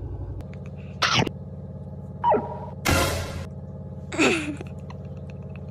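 A man kisses a cat with short smacking and sniffing sounds.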